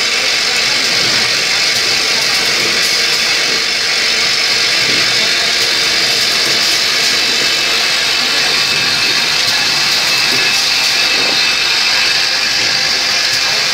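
An automated machine clicks and clanks rhythmically.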